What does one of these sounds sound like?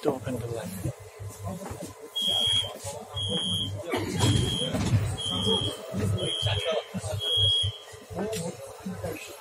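A metro train rumbles and rattles.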